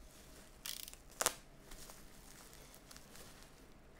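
A box cutter blade clicks.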